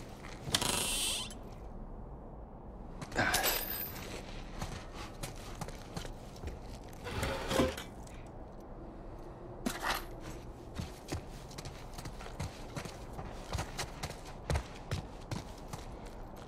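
Footsteps tread slowly across a hard floor indoors.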